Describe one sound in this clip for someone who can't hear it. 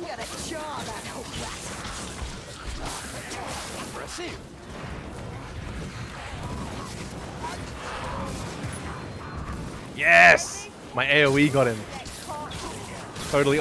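Blades clash and strike in a melee fight.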